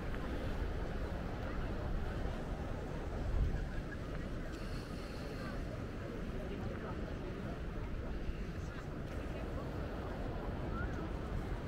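Small waves lap gently against rocks.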